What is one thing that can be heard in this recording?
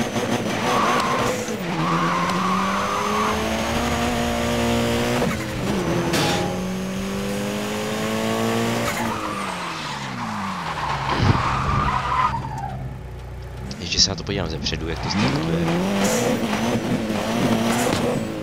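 Tyres screech on the road.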